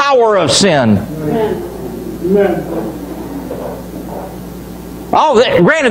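A middle-aged man preaches with animation through a loudspeaker in an echoing hall.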